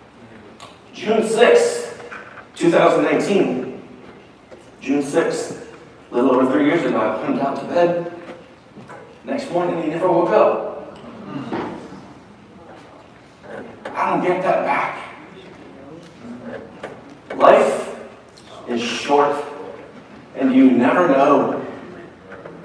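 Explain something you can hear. A middle-aged man speaks with animation in a large echoing hall.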